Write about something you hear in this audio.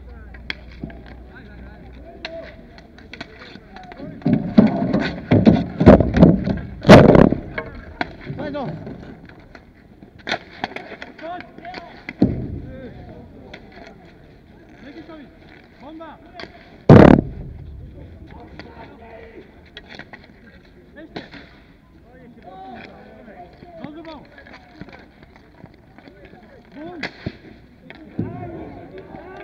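Hockey sticks clack and scrape on the ball and the hard ground.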